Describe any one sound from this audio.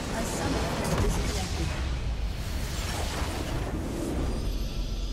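A large structure explodes with a booming crash.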